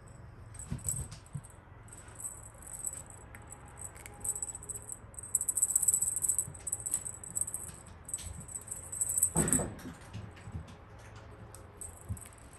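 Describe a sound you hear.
A cat's claws scratch against a carpeted perch.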